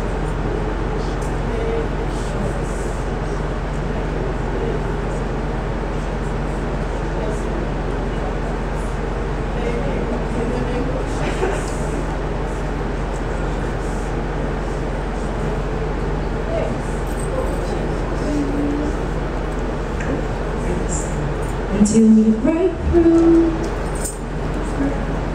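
A crowd murmurs and chatters in a large room.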